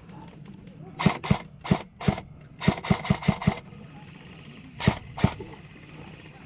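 An airsoft rifle fires quick bursts of sharp pops close by.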